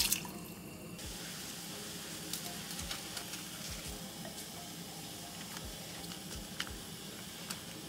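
A pot of liquid bubbles and simmers.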